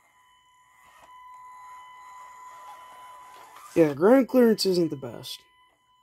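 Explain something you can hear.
A toy truck is pushed softly across a carpet.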